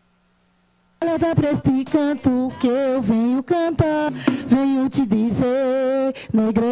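Hand drums are beaten in a lively rhythm.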